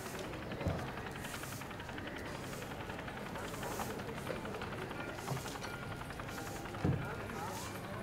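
A broom sweeps a stone pavement with rhythmic swishes.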